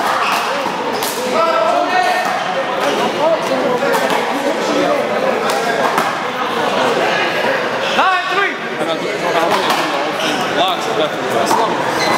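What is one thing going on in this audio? A ball smacks sharply against a wall, echoing in a large hall.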